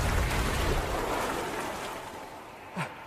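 A wooden staff splashes and stirs in shallow water.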